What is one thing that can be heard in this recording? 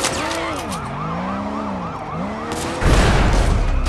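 A police siren wails and warbles.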